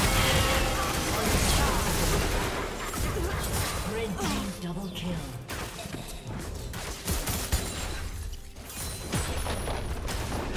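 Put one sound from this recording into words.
Spell effects crackle and blast during a video game battle.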